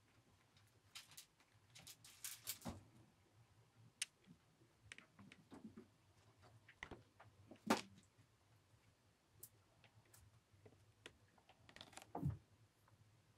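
Cats' paws patter and thump softly on the floor.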